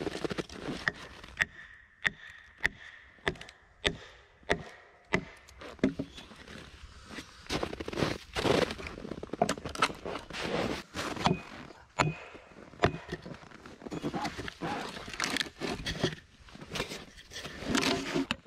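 Wood splits and creaks as it is pried apart.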